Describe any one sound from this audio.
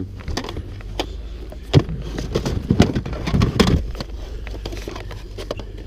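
A cardboard box rustles as hands rummage inside it.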